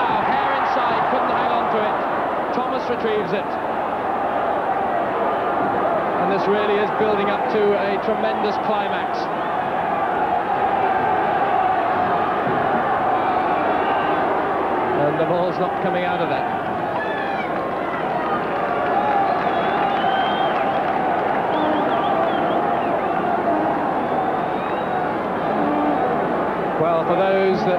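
A large stadium crowd murmurs across an open ground.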